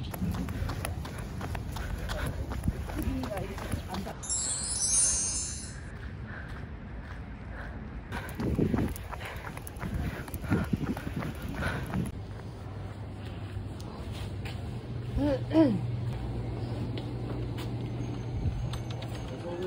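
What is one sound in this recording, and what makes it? Footsteps walk on pavement.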